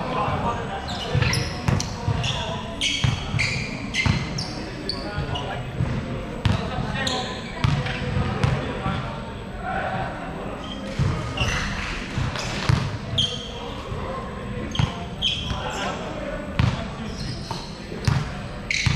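Basketballs bounce on a wooden floor, echoing in a large hall.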